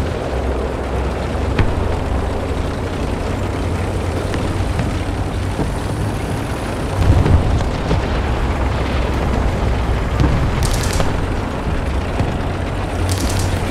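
Tank tracks clatter and squeak over the ground.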